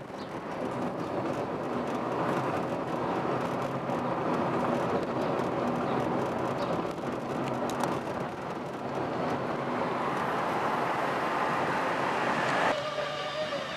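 A car engine hums and tyres roll on the road, heard from inside the car.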